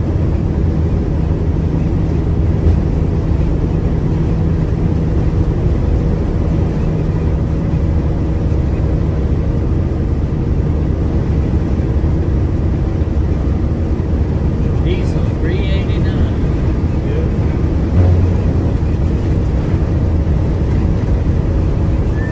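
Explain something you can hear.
Tyres rumble steadily on the highway.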